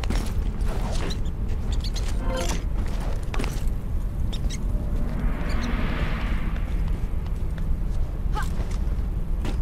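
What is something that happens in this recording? Hands grab and scrape on metal ledges while climbing.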